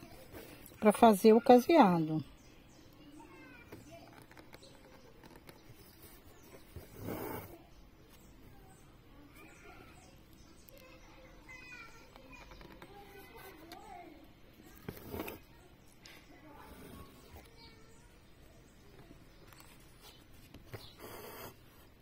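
Thread rasps softly as it is pulled through taut cloth.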